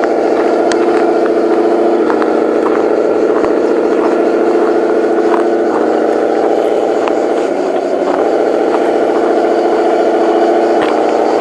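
Toy truck tyres crunch and click over loose gravel.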